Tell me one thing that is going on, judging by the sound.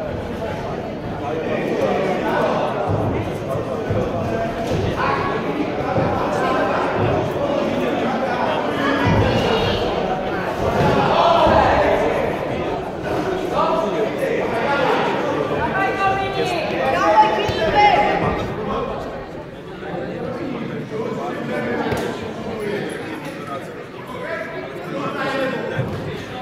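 Ringside spectators shout encouragement in a large echoing hall.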